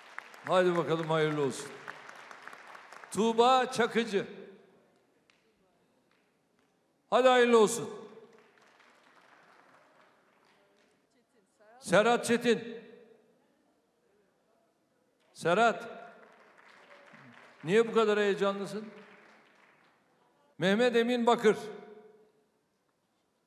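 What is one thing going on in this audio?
An older man speaks calmly into a microphone, in short phrases with pauses, echoing through a large hall.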